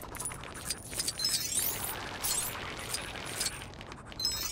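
A fast electric whoosh rushes past.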